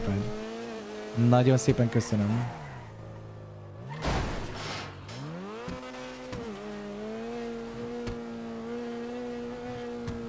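A car engine hums and revs up and down through gear changes.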